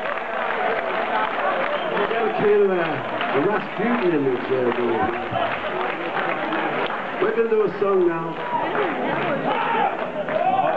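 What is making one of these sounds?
A man sings into a microphone in a live hall.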